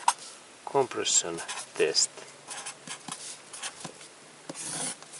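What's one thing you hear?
A marker scratches and squeaks across paper.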